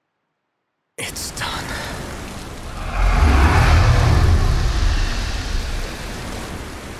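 Rough sea waves roar and churn below.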